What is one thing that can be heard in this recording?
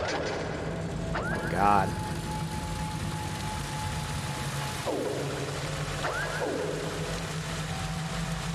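A small mechanical flying device whirs and chirps as it flies.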